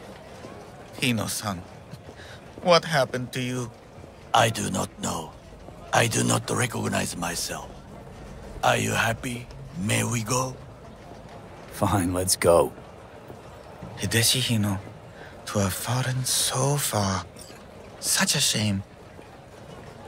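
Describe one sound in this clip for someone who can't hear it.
An elderly man speaks slowly and sadly.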